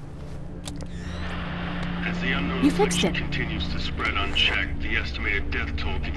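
A radio hisses with static.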